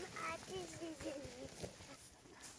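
A young child talks in a high voice close by.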